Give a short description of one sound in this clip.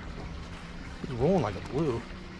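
A man exclaims excitedly close by.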